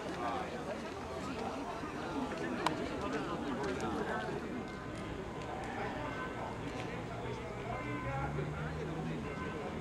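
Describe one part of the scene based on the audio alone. A crowd of adult men chatter and call out nearby outdoors.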